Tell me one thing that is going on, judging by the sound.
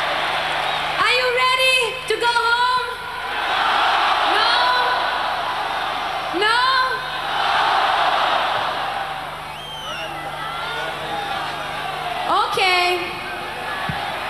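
A woman speaks into a microphone over loudspeakers in a large echoing arena.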